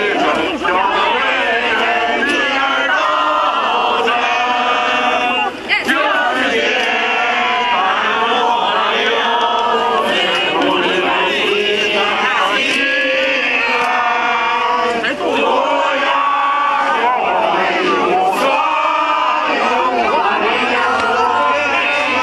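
A large crowd of men and women sings together outdoors.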